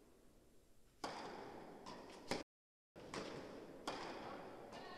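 A tennis racket strikes a ball with sharp pops that echo in a large hall.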